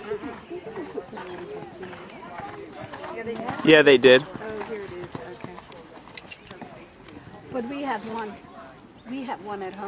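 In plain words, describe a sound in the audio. A horse's hooves thud on soft sand.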